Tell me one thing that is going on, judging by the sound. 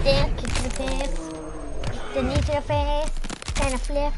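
Bones crack and crunch.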